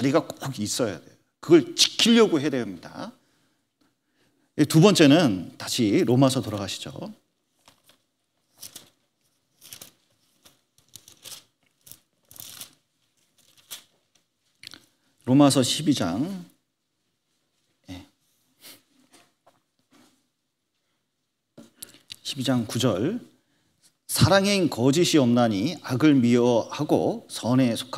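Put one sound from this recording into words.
A man speaks with animation into a microphone, pausing often.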